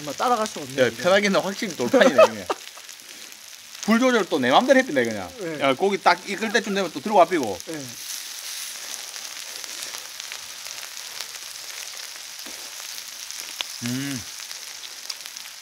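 Food sizzles on a hot grill.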